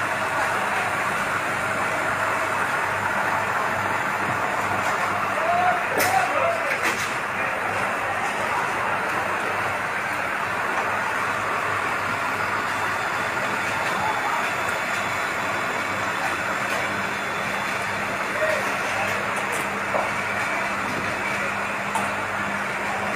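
A fire truck engine idles with a steady rumble.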